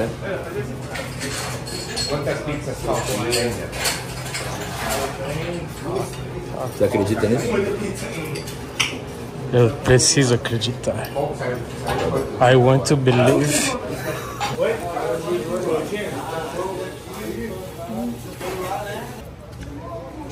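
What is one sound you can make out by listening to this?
Several young men chatter in the background.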